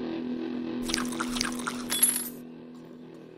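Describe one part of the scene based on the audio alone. A short bright chime rings as an item is picked up.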